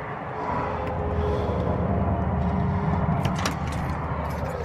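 A key turns in a deadbolt lock.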